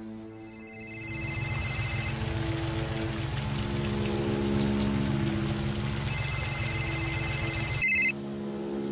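A car engine rumbles as a car drives past.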